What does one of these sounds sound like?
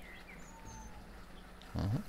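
A fish splashes at the water's surface.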